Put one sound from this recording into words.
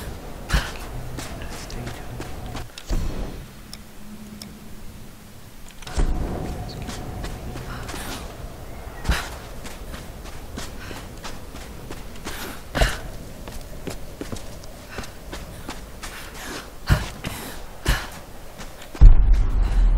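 Footsteps crunch quickly on snow and dirt as a woman runs.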